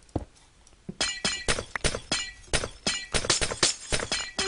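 Glassy blocks shatter in quick, crackling bursts.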